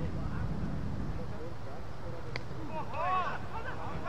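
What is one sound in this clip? A cricket bat knocks a ball once.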